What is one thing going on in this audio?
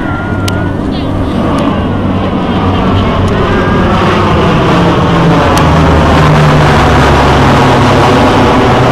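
A four-engine C-130H Hercules turboprop drones low overhead on approach to land, growing louder.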